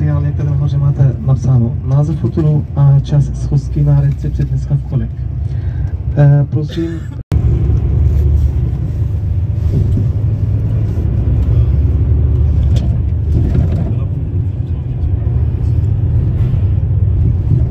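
A vehicle's engine rumbles steadily as it drives along a road.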